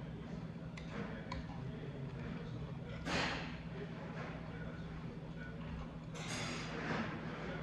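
A metal spoon scrapes and clinks against a stone bowl.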